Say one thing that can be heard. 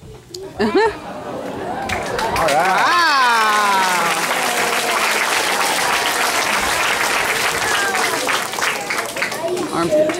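An audience of children cheers and screams loudly in a large hall.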